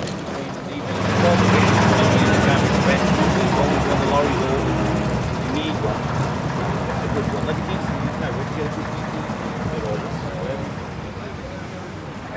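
A bus engine revs as the bus pulls away.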